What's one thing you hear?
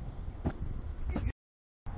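A person lands with a thud on grass.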